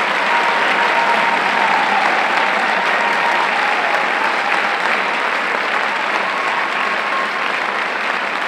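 A large brass band plays in a hall.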